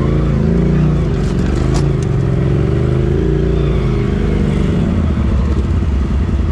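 An off-road vehicle's engine rumbles and revs close by.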